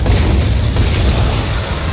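A gun fires with a bright crackling blast.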